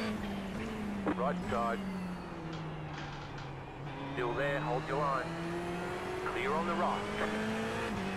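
Tyres squeal through the corners.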